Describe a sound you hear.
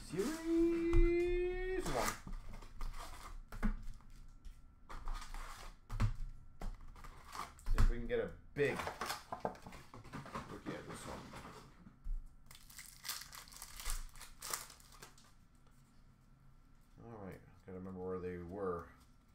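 Cardboard packs rustle and tap as hands handle them.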